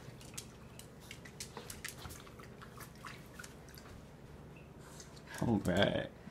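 A small dog crunches dry food from a metal bowl.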